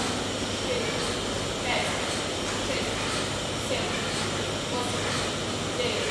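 A man breathes out hard with each pull-up.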